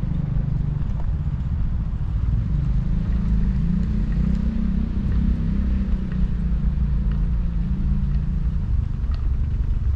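A car engine hums nearby as the car drives slowly ahead.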